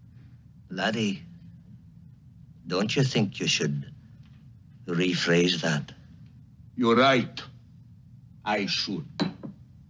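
A man speaks in short bursts with pauses between them.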